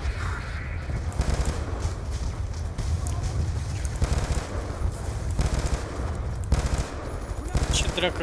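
A rifle fires bursts of shots nearby.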